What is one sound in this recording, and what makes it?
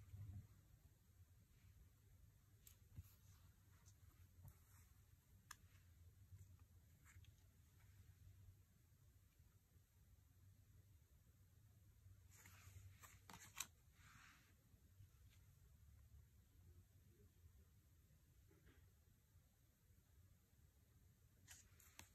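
Cards rustle and slide against each other as they are handled.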